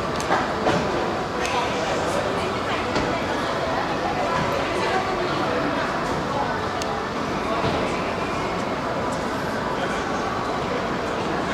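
Many people murmur and chatter in a large echoing hall.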